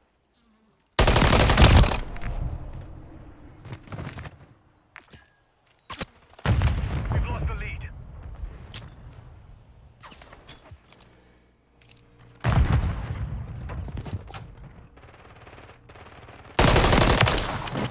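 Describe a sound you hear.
A rifle fires in loud rapid bursts.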